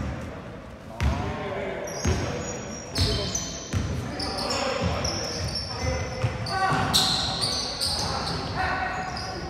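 A basketball bounces with booming thuds in a large echoing hall.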